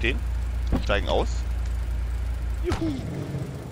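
A car engine hums steadily, then cuts off.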